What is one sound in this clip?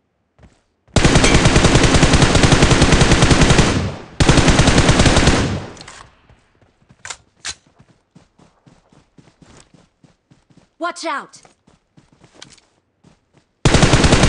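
A rifle fires rapid automatic bursts.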